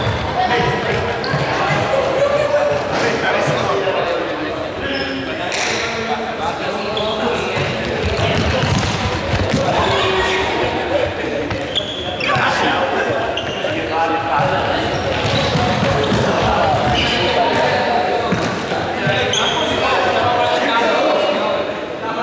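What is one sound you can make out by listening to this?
Sneakers squeak and patter on a hard gym floor as players run.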